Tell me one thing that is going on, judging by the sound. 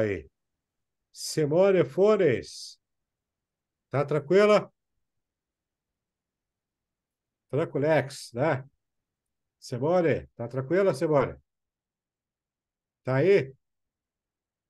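A man talks with animation into a close microphone, with pauses.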